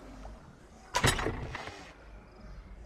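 A game menu opens with a short whooshing chime.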